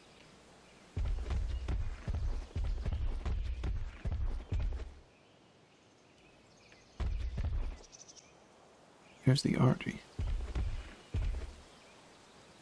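A large animal's heavy footsteps thud on the ground in quick bursts.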